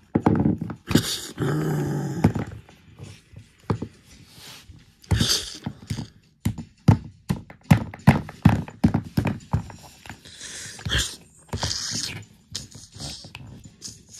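Plastic toy dinosaurs knock and tap against each other and a hard floor.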